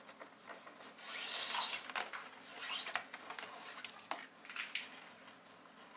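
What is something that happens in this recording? Nylon paracord rustles and swishes as hands pull it through a knot.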